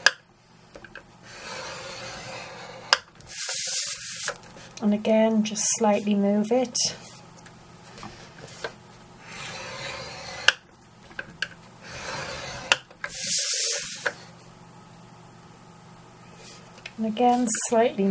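A scoring tool scrapes along a sheet of card.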